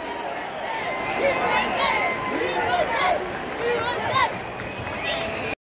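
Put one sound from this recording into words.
Many voices in a crowd shout and cheer.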